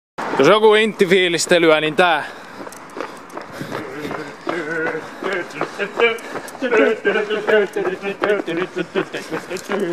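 Footsteps of people jogging patter on pavement.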